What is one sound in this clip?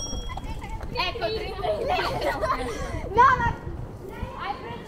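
Young girls call out and chatter nearby, outdoors.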